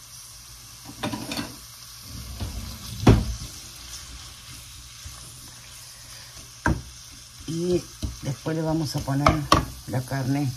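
A wooden spoon scrapes and knocks against a frying pan.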